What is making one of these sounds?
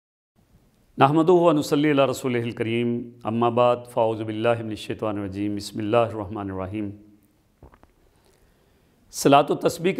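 An elderly man speaks calmly and steadily into a close microphone.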